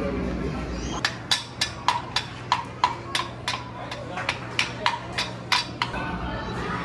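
A small child taps pegs with a wooden toy hammer in quick, steady knocks.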